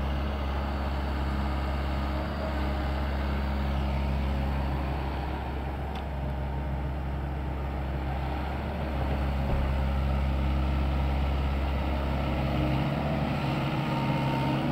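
A diesel engine of a compact crawler excavator runs under load.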